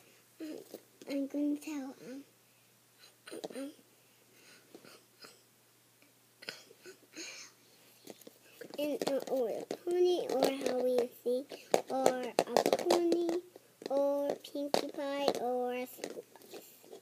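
A young girl talks animatedly close by.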